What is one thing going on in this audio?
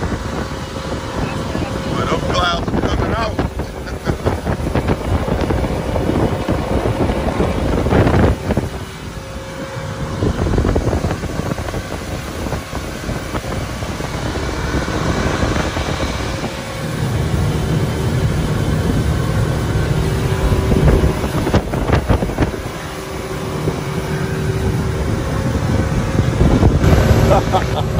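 Water splashes and churns against the hull.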